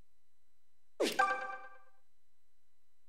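A bright electronic chime rings out and fades.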